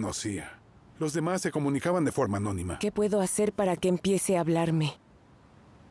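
A woman speaks calmly and earnestly nearby.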